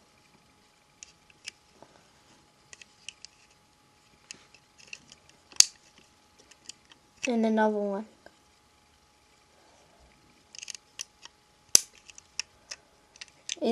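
Plastic toy bricks click and rattle as hands handle a toy truck.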